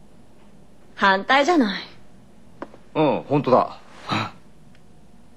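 A young woman speaks.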